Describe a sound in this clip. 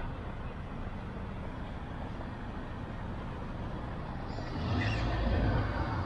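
A van drives past on the street.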